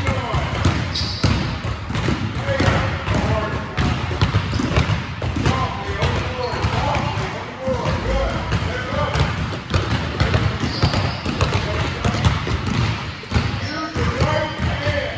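Basketballs bounce on a hardwood court in an echoing gym.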